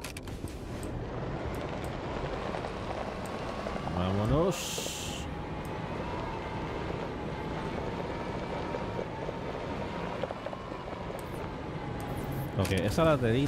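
A small vehicle's motor hums steadily as it drives.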